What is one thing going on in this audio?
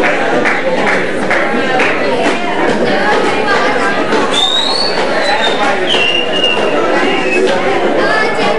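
A live rock band plays loudly in an echoing room.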